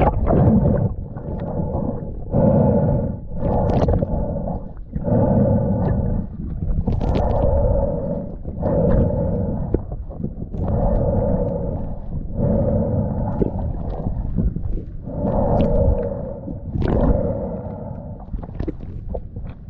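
A swimmer breathes in and out through a snorkel in slow, heavy, muffled breaths underwater.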